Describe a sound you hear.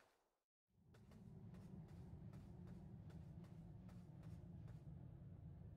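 Small footsteps tap at an even pace.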